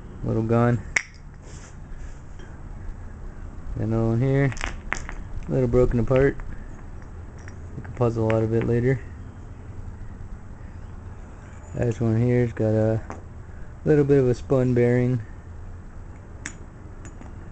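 Metal engine parts clink against each other as they are handled.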